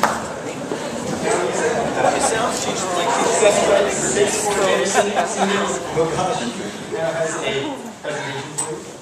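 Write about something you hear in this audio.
A man speaks into a microphone over a loudspeaker in an echoing hall.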